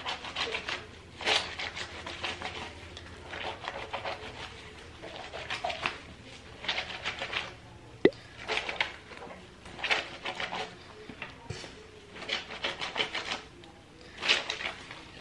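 Wet fabric squelches and swishes as hands rub it in soapy water.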